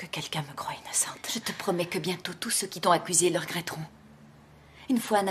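A woman speaks close by in a firm, serious voice.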